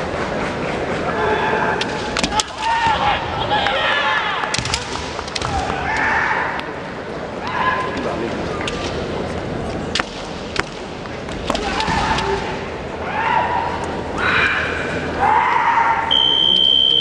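Fencers shout loud, sharp cries in a large echoing hall.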